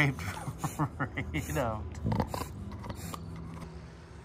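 A bulldog pants heavily.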